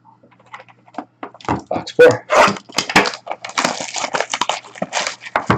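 Hands click and rattle a small plastic case.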